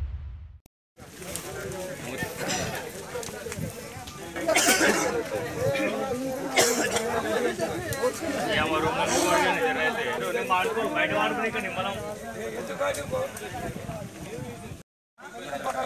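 A crowd of men talk excitedly at a distance.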